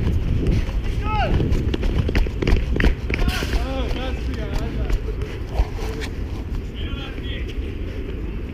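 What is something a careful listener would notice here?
A young man shouts from a distance outdoors.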